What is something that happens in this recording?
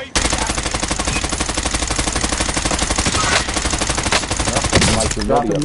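A rifle fires in rapid, steady bursts.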